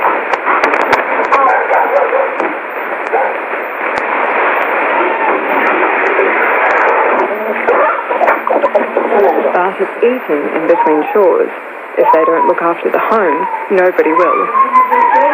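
A radio plays a warbling, fading broadcast through a small loudspeaker.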